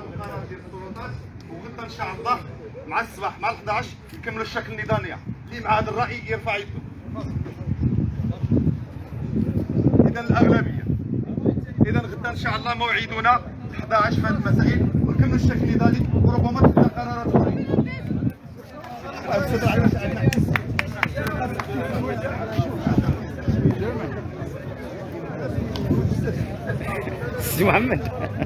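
A crowd of men and women chants along loudly outdoors.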